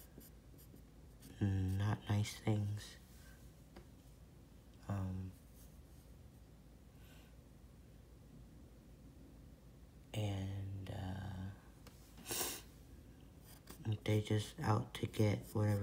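A pencil scratches on paper.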